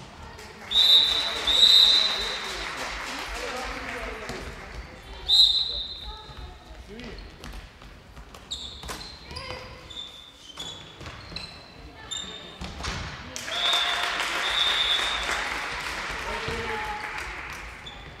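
Spectators cheer and shout in the hall.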